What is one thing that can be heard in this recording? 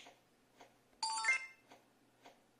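A short chime plays from a small tablet speaker.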